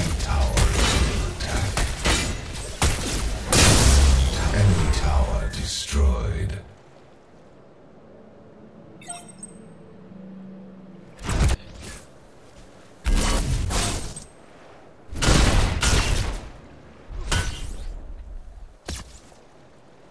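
Energy weapons blast and crackle in a loud fight.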